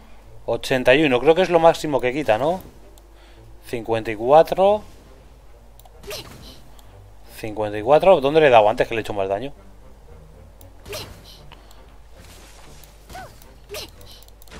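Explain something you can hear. A bow looses arrows with quick sharp twangs.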